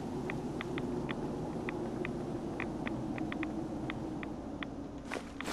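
Footsteps thud on a wooden walkway.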